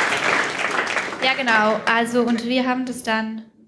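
A young woman speaks into a microphone, heard through loudspeakers.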